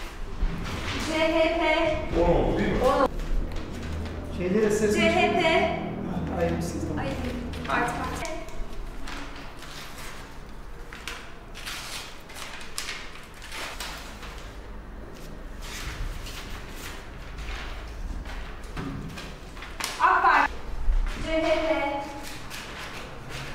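A woman reads out aloud in a room with some echo.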